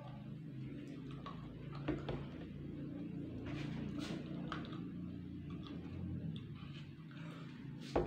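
A man gulps down water.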